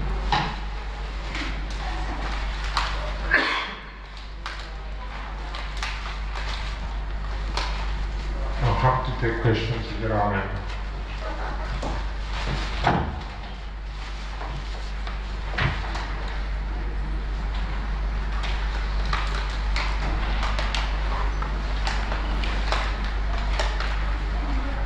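Crackling clicks and pops play through loudspeakers.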